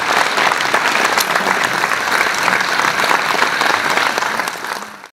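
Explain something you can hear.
A band plays music loudly on a stage.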